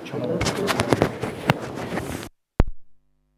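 A crowd of men murmurs close by.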